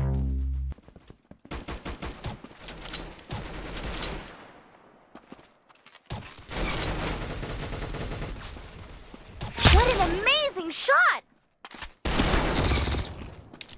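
Pistol shots fire one after another in a video game.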